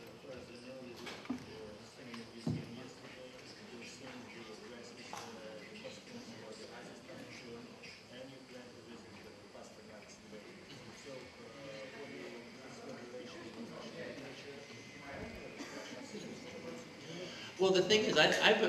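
A crowd murmurs quietly in a large room.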